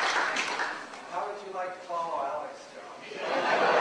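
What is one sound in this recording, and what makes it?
A man speaks through a microphone with a laugh in his voice.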